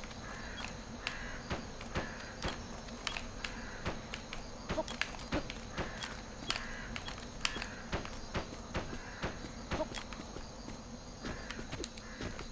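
Footsteps patter in quick succession.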